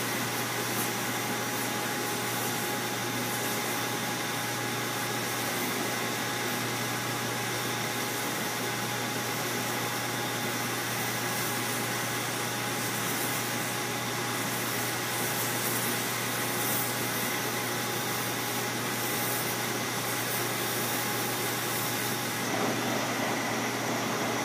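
A polishing wheel's motor hums steadily.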